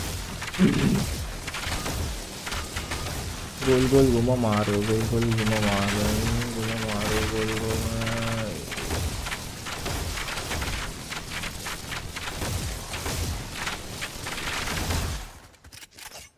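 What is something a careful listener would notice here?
An energy beam fires in rapid crackling bursts.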